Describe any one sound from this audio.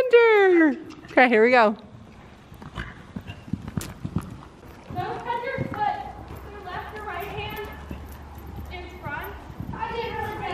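A horse's hooves thud on soft sand at a trot.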